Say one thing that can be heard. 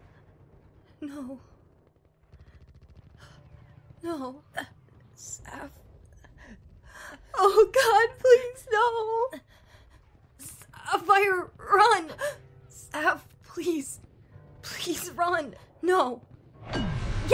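A young woman speaks tearfully and with emotion.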